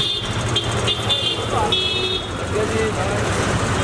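Men talk outdoors in a busy street.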